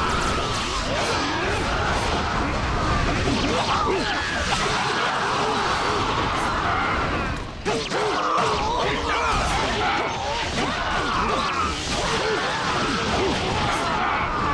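Swords clash and slash rapidly in a game battle.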